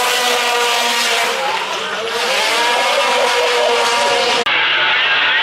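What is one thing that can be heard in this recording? A racing car engine roars loudly at high revs.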